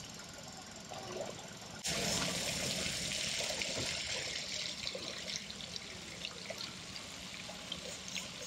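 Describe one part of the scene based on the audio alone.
Water splashes softly as a swimmer moves through a pool.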